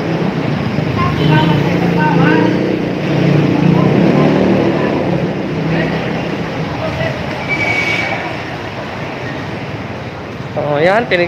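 Traffic rumbles steadily nearby.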